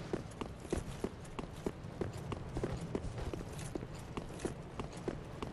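Armoured footsteps clink quickly and steadily on stone.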